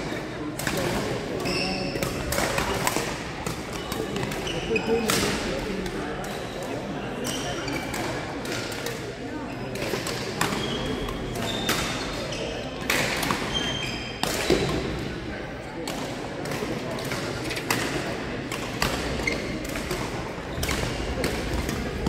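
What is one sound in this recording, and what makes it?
Sports shoes squeak on a hall floor.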